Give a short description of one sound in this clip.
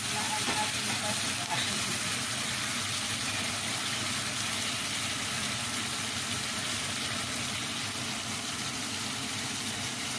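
A wooden spatula scrapes and stirs through thick sauce in a pan.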